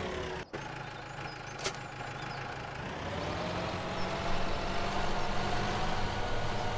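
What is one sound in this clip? A tractor engine hums steadily and grows louder.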